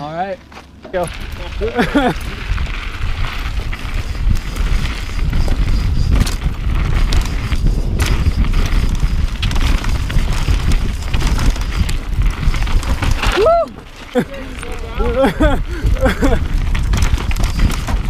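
Bike tyres crunch and rattle over a dirt trail.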